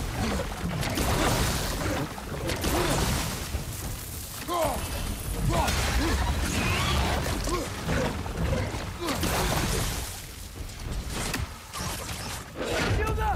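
Water splashes under heavy footsteps.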